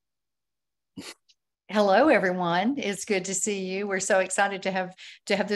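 A woman speaks warmly over an online call.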